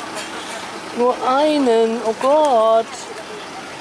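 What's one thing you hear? A young woman speaks nearby in a high, sing-song voice.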